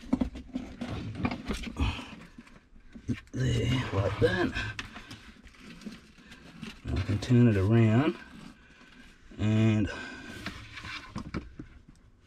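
Hands knock and shuffle a plastic device on a hard floor.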